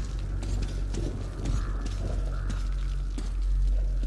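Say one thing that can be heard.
Flames crackle nearby.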